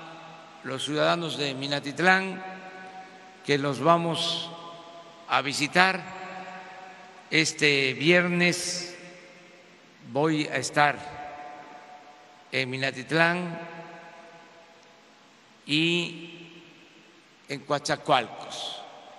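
An elderly man speaks slowly and deliberately through a microphone, with pauses, in a large echoing hall.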